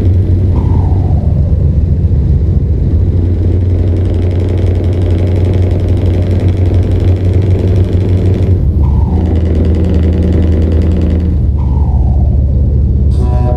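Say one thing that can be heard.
A truck engine drones steadily, dropping briefly as gears change.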